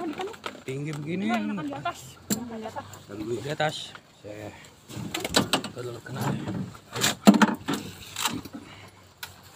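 Men talk close by.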